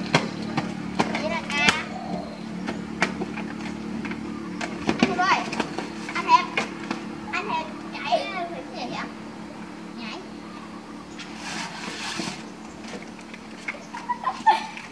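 Young children shout and chatter excitedly nearby.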